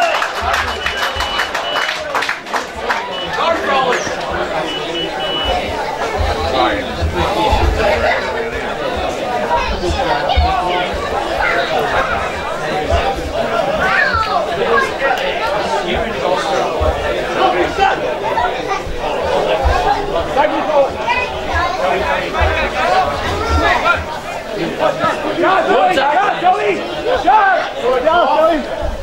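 Men talk and call out nearby outdoors, with lively chatter throughout.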